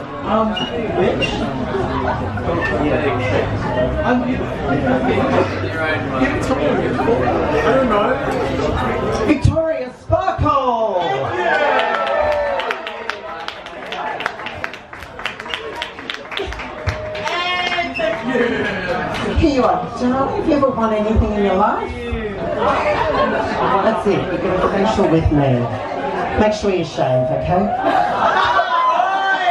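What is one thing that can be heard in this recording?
A young woman speaks with animation into a microphone, amplified through loudspeakers in a lively room.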